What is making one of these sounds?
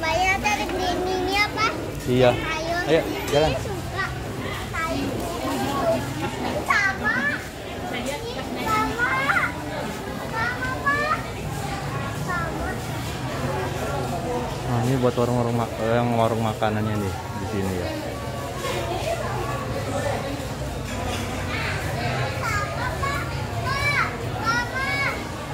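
Women chat nearby and in the distance, voices echoing in a large hall.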